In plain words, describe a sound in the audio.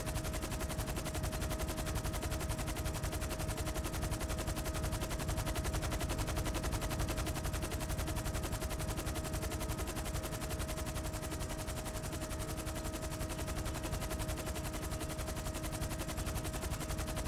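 A helicopter's rotor thumps rapidly and steadily with a droning engine whine.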